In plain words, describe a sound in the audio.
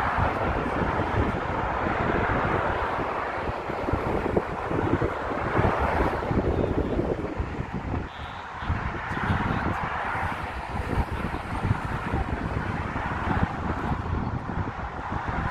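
Traffic rushes steadily past on a busy highway.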